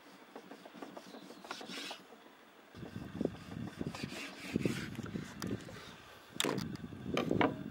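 A knife blade taps against a wooden board.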